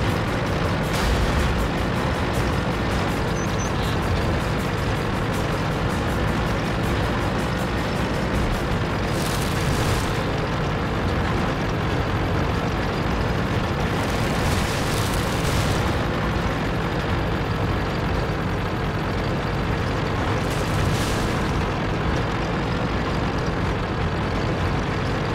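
A heavy tank engine rumbles steadily as the tank drives along.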